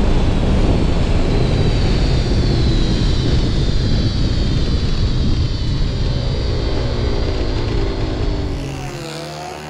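A motorcycle engine roars at high speed close by.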